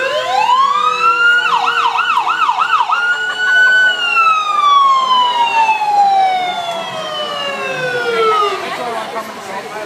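An ambulance siren wails and yelps close by, then winds down and fades.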